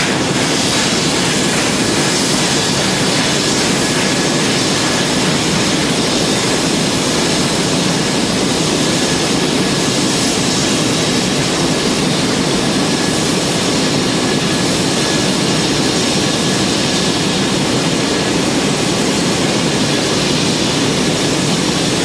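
A steam locomotive chuffs steadily as it pulls away.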